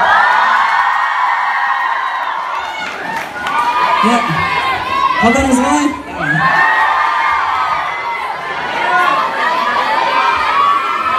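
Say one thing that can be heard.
A crowd of young fans screams loudly and excitedly.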